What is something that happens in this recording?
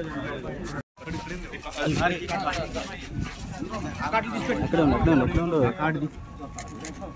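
A middle-aged man speaks with animation to people around him.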